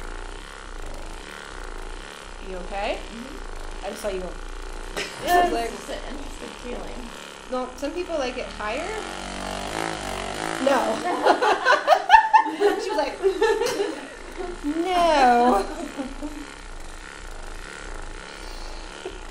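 A massage gun buzzes steadily.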